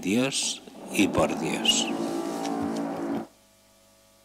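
An elderly man chants a sustained line into a microphone.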